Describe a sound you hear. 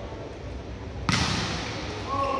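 A volleyball is struck hard with a loud smack.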